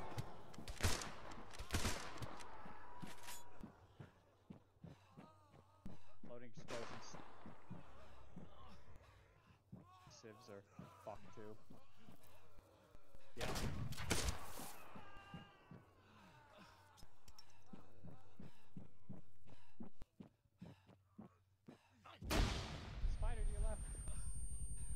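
Gunshots crack loudly in bursts.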